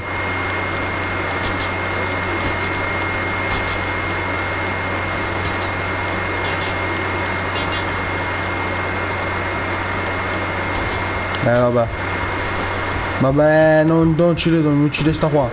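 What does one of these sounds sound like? Swords clash and clang in a fight.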